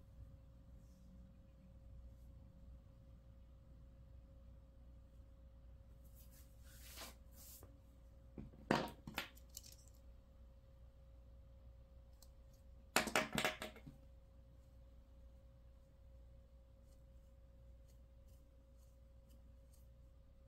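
Hands rustle and rub a piece of crocheted yarn.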